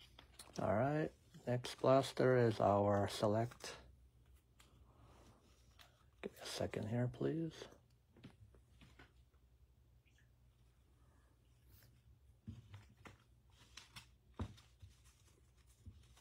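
Trading cards rustle and slap softly as a hand sorts through them.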